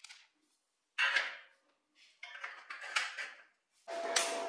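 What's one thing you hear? Short metal pieces clink onto a steel frame.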